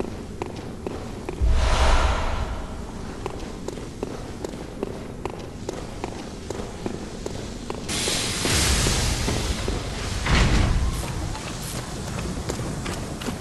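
Footsteps crunch steadily over loose ground.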